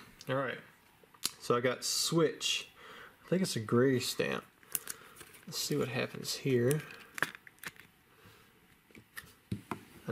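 Plastic card sleeves rustle and crinkle in hands close by.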